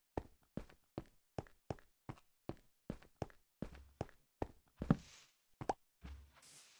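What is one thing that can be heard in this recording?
Footsteps tap steadily on stone and grass.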